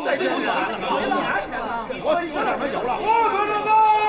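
A group of men laugh and chatter loudly.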